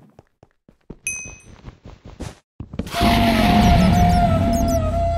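A block is hit and crunches as it breaks.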